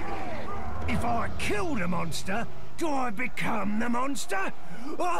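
A man speaks in a deep, growling voice.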